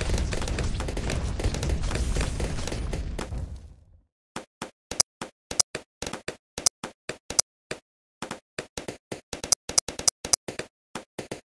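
Balloons pop in quick succession as game sound effects.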